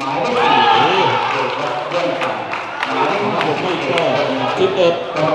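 A crowd cheers and chatters in a large echoing hall.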